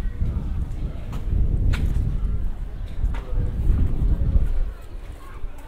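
Wind gusts outdoors, rumbling loudly and then dying down.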